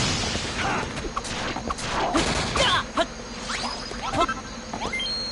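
A sword strikes a monster with sharp hits.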